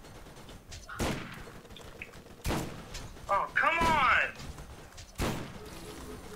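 Gunshots fire in sharp, separate bursts.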